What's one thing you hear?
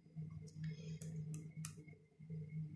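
A fingernail taps lightly on a playing card.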